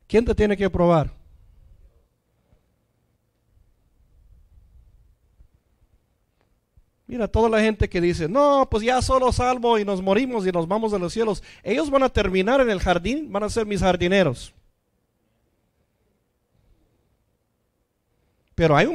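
A man speaks with animation through a microphone, with pauses.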